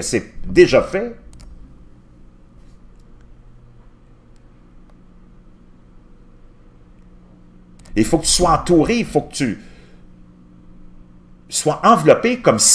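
A middle-aged man speaks calmly and closely into a microphone, with long pauses.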